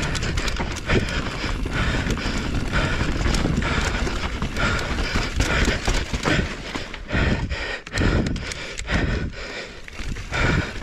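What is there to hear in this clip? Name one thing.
A bicycle frame and chain clatter over bumps.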